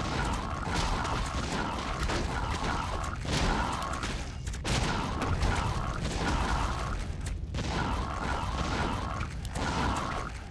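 Weapons clash and strike in a busy battle.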